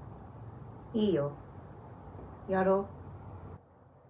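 A second young woman speaks sharply nearby.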